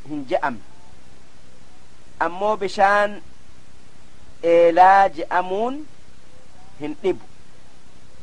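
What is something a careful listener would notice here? An elderly man speaks slowly in a chanting voice through a microphone.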